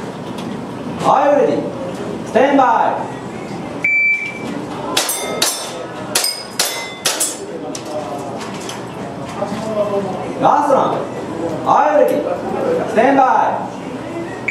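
A man speaks loudly nearby.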